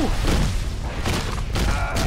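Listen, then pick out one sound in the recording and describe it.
A fiery explosion roars with a deep rumble.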